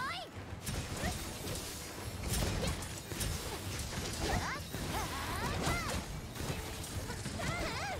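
A monster screeches and roars.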